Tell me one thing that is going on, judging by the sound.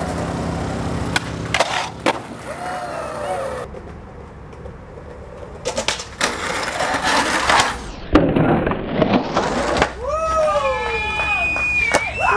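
A skateboard clacks and lands hard on concrete.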